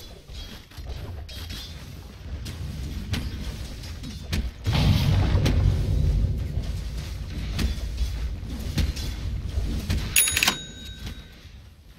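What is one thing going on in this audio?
Magical blasts whoosh and crash in a fight.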